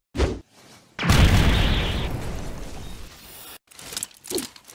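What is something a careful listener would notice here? A loud blast booms and slowly fades.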